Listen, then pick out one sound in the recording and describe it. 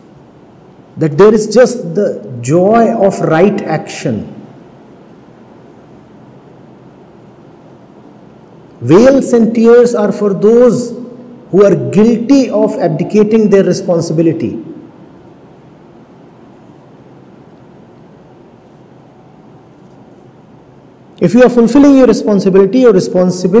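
A middle-aged man speaks calmly and deliberately into a microphone, with long pauses.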